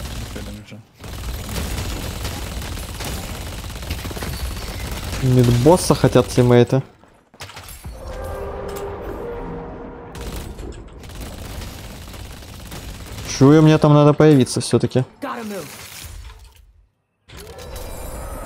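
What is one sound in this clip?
Gunshots fire rapidly.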